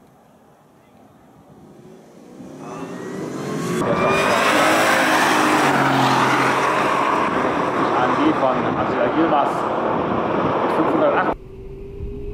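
Two high-powered cars accelerate at full throttle and roar past.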